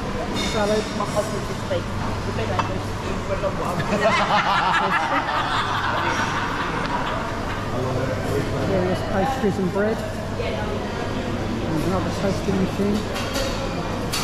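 A crowd of people chatters in a large, echoing room.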